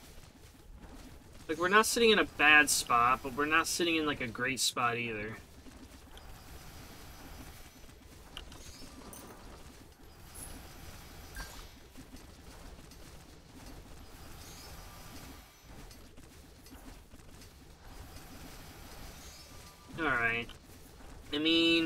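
Video game sound effects zap and crackle rapidly.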